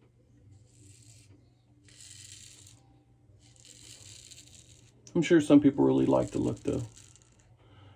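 A razor scrapes through stubble in short strokes.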